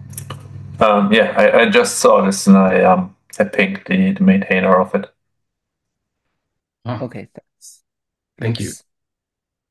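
A man talks calmly over an online call.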